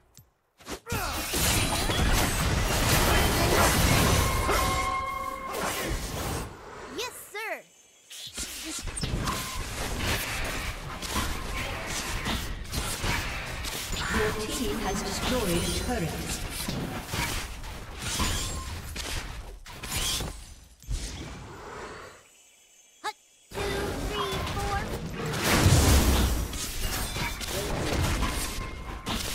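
Game combat effects crackle, clash and boom in quick bursts.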